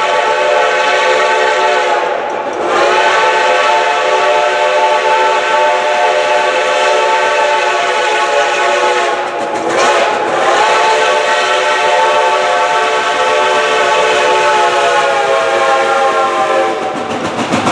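A steam locomotive's whistle blows in long, loud blasts as the train approaches.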